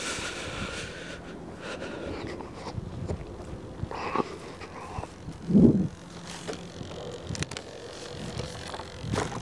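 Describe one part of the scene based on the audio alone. Footsteps swish through grass outdoors.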